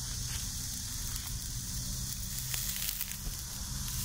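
Metal tongs click against a grill grate.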